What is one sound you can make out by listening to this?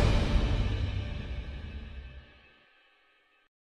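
A short music jingle plays and fades out.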